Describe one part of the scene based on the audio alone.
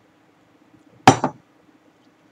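A glass is set down on a table with a dull knock.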